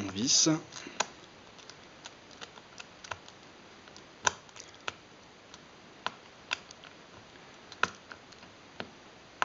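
A small screwdriver clicks and ticks against a metal screw.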